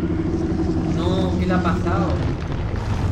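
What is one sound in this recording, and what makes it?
A huge beast lets out wavering high cries.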